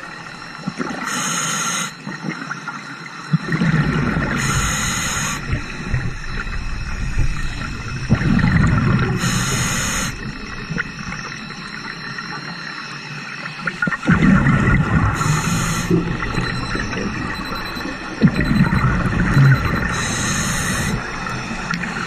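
Air bubbles from a diver's breathing gear gurgle in loud bursts underwater.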